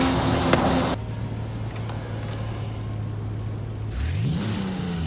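A car engine idles with a low steady hum, then revs up.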